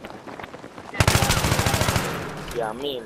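An assault rifle fires a rapid burst.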